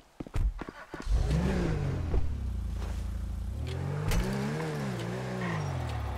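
A car engine starts and revs loudly as the car drives off.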